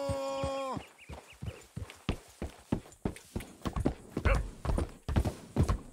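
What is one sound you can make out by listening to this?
A horse's hooves clop steadily on the ground.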